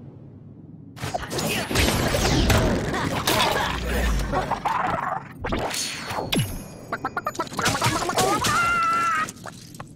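Blows and magic blasts ring out in a busy game fight.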